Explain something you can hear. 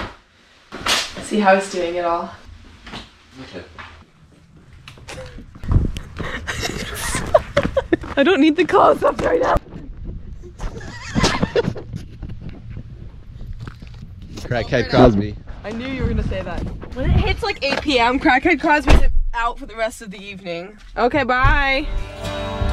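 A young woman laughs loudly nearby.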